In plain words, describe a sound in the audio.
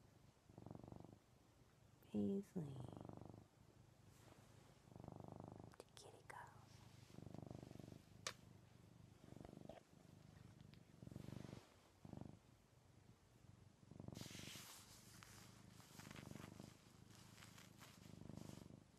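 A cat purrs loudly up close.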